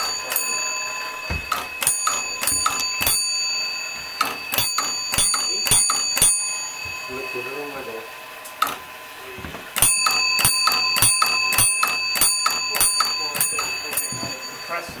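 Electric bells ring in quick, repeated bursts.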